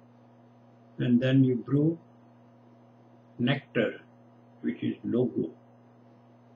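An elderly man speaks calmly in short phrases, close to the microphone.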